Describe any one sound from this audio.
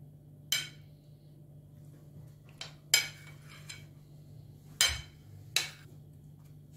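A plate clinks against a table.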